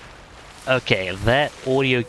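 Leaves rustle as someone moves through dense plants.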